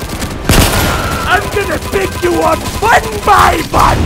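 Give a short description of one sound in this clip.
A rifle fires rapid gunshots.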